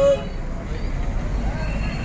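A motorcycle engine hums as it rides past.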